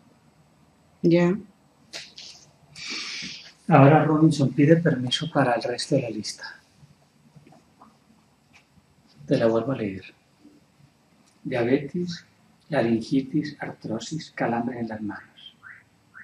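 A middle-aged man speaks calmly and softly close by.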